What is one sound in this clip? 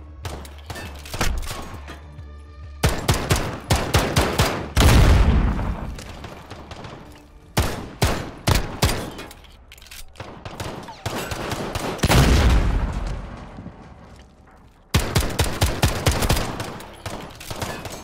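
A pistol is reloaded with metallic clicks.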